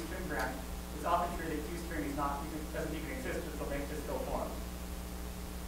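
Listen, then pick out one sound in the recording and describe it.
A man speaks calmly to a room, heard from a distance.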